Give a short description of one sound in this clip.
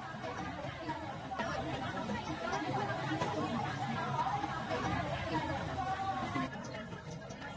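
A busy outdoor market murmurs with many voices nearby.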